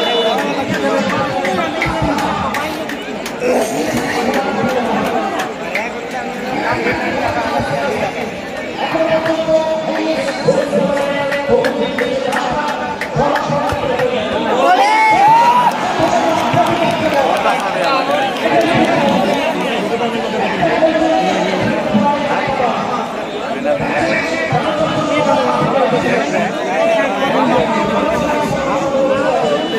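A large crowd outdoors chatters and shouts.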